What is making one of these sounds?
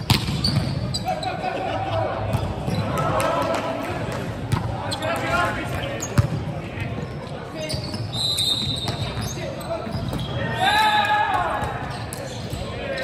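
Young men shout and call out across the court, echoing in the hall.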